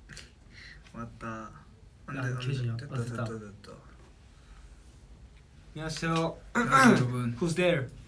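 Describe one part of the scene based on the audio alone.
Another young man speaks with animation close to a microphone.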